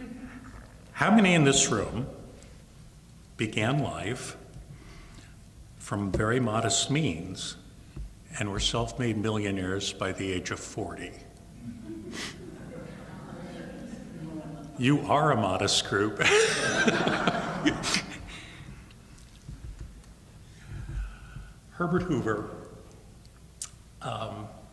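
An elderly man speaks calmly into a microphone in a large room, heard through loudspeakers, with pauses.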